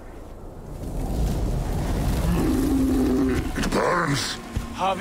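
A deep growling voice speaks slowly.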